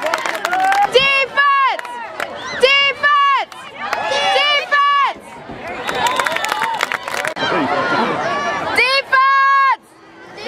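Young boys on the sideline yell loudly.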